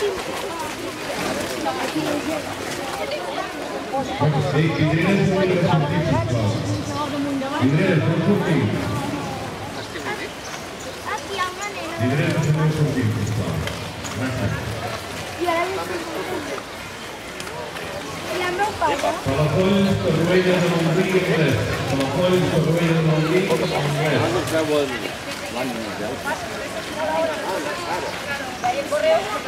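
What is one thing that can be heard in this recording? Horses' and ponies' hooves clop softly on a dirt path.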